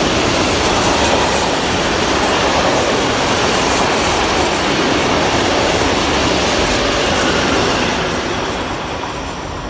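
A freight train rattles loudly past, its wagons clattering.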